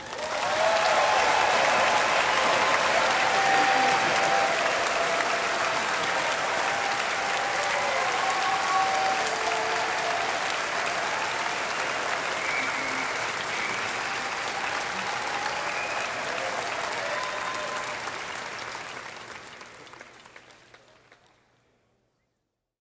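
A large audience applauds loudly in a big hall, then the applause fades away.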